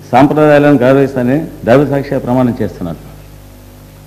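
A middle-aged man speaks with emphasis through a microphone in a large hall.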